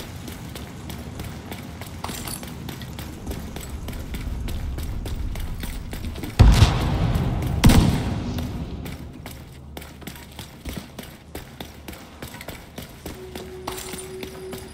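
Heavy footsteps run over hard ground.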